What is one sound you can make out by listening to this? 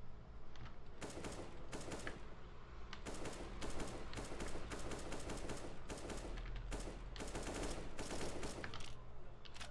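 A rifle fires in short bursts of loud shots.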